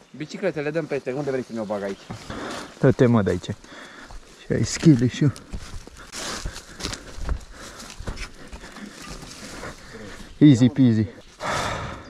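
A man speaks with animation close to a helmet microphone.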